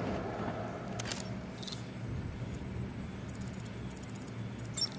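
A handheld electronic device beeps and chirps.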